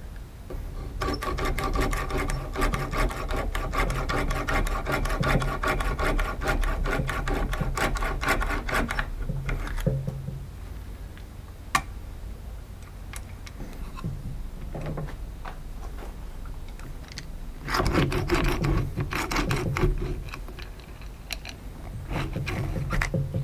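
A hand-turned drill bit grinds and squeaks as it bores into hard wood.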